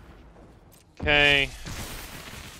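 A short bright chime rings out.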